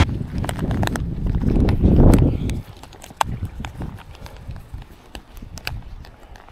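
Plastic clicks and rattles as hands handle a phone case.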